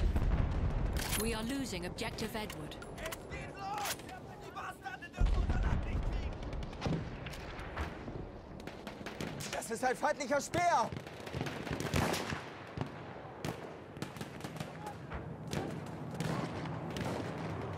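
Rifle shots crack repeatedly, some near and some far off.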